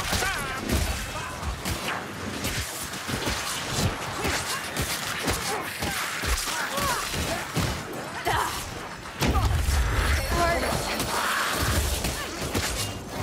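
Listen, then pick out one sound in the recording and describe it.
A wooden spear thuds and slashes into enemies.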